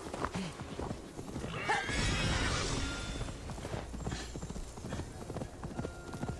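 Hooves thud on grass as a horse gallops.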